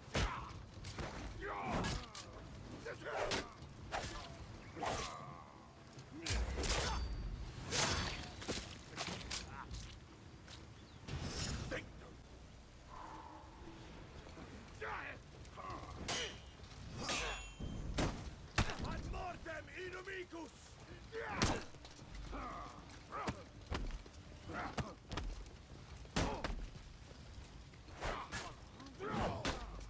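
Metal weapons clash and strike hard, again and again.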